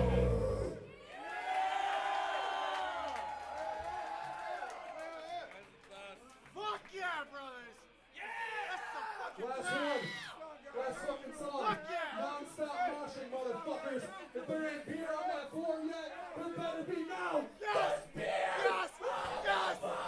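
A rock band plays loudly with drums and distorted guitars.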